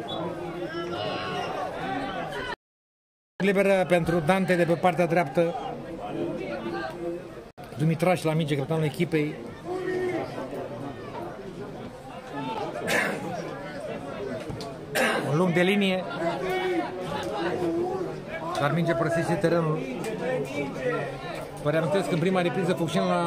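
Men in a crowd of spectators talk and shout nearby.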